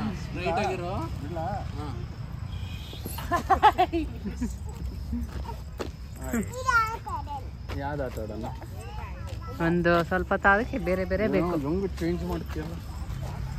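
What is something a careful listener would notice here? A little girl squeals and laughs close by.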